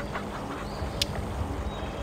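A short click sounds as a game menu pops open.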